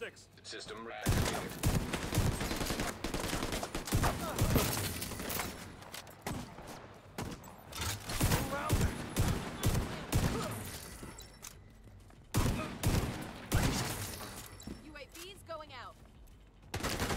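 Gunfire bursts out in rapid cracks.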